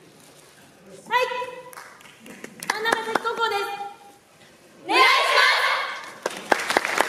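Young women call out together in unison on an echoing stage.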